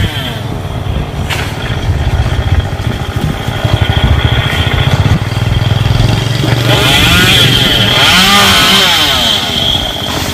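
A chainsaw engine buzzes and whines while cutting.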